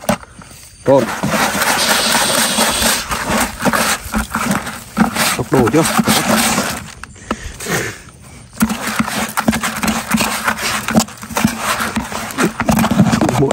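A hand stirs grainy bait in a bucket with a rough, scraping rustle.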